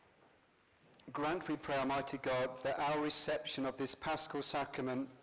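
A man reads aloud steadily into a microphone in an echoing hall.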